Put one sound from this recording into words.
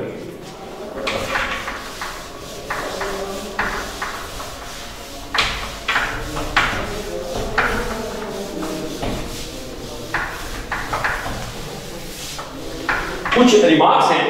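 A duster rubs and squeaks across a whiteboard.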